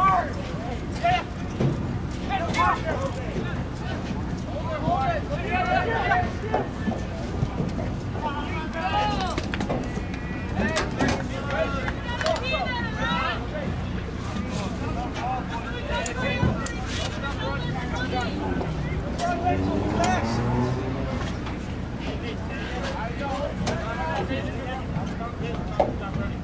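Men and women shout and cheer nearby, outdoors.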